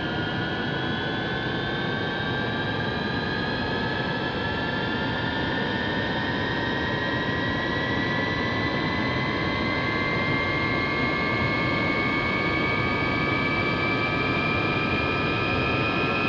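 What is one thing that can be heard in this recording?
A jet engine whines steadily, its pitch slowly rising as it spools up.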